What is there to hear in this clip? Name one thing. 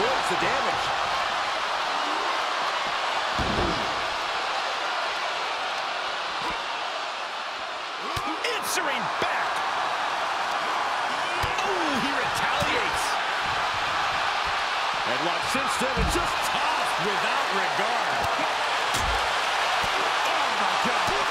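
Heavy blows thud as wrestlers strike each other.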